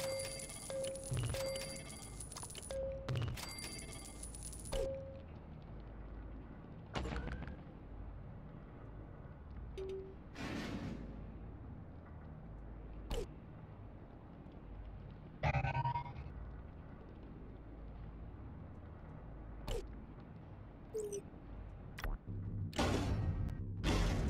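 Short electronic beeps and clicks sound as game menus open and close.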